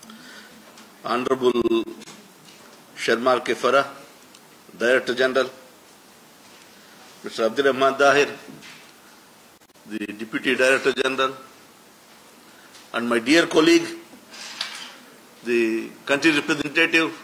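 A man speaks slowly and formally into a microphone, heard through a loudspeaker in a room.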